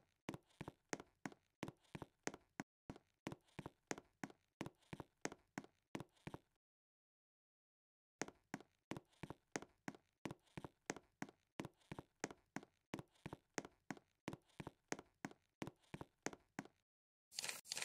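Footsteps thud at a steady walking pace on a soft floor.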